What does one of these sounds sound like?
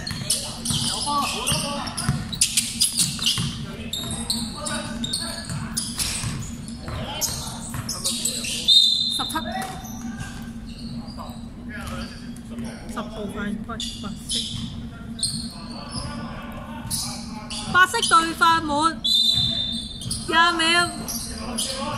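Sneakers squeak sharply on a hall floor.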